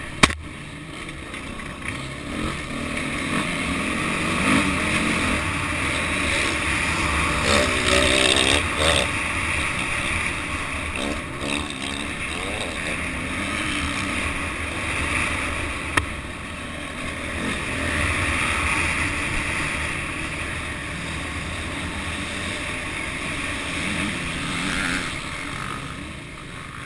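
A dirt bike engine revs loudly up close, rising and falling with the throttle.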